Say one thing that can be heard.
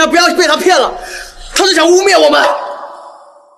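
A young man speaks sharply and close by.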